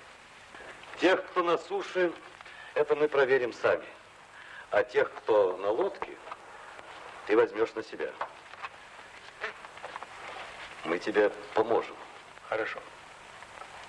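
A middle-aged man speaks calmly and firmly nearby.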